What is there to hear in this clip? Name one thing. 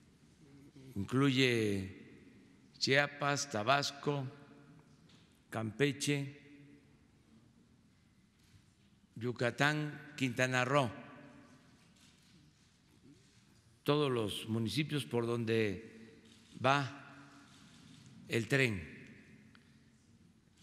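An elderly man speaks slowly and deliberately into a microphone, in short phrases with pauses, in a room with a slight echo.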